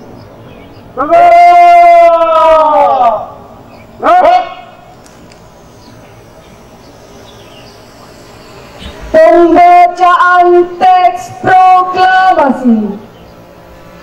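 A man shouts drawn-out commands through a loudspeaker outdoors.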